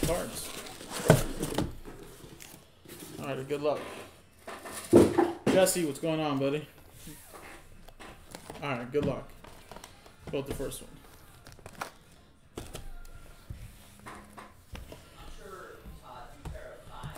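Cardboard boxes knock and slide against each other.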